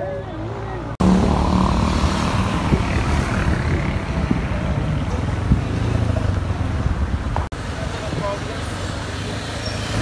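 Motorcycle engines hum and rumble along a street.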